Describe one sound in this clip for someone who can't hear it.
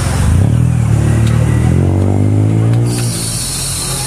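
A car engine revs loudly with a rising roar.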